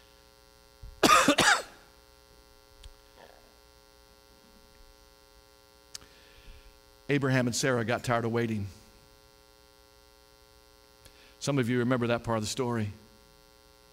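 A man speaks with animation through a microphone, in short bursts.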